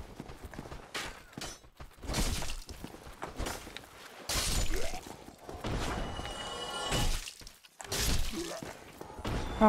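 Metal weapons clash and thud in a fight.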